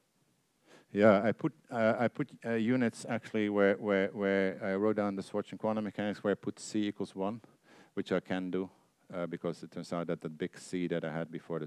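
A man speaks calmly into a headset microphone, lecturing.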